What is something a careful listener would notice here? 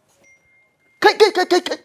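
A young man shouts urgently nearby.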